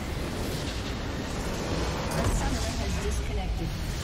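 A structure explodes with a deep rumbling blast.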